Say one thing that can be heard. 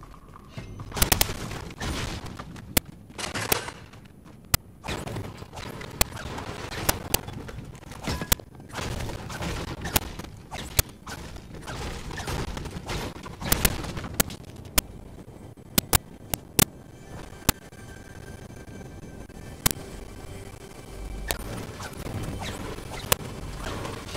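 A pickaxe strikes wood and metal with sharp, repeated knocks.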